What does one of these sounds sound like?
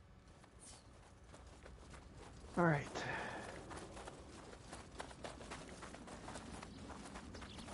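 Footsteps tread on stone ground.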